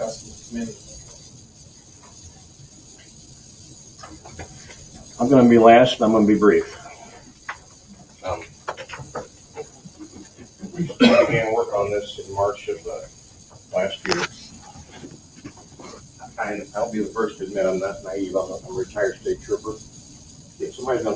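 People in an audience murmur and talk quietly.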